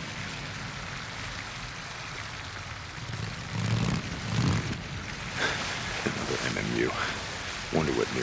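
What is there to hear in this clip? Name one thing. A motorcycle engine rumbles steadily as it rides along.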